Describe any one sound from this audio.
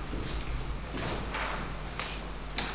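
A sheet of paper rustles as a page is turned.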